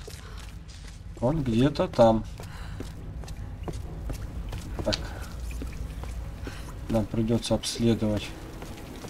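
Footsteps scuff and tap on a hard, wet floor.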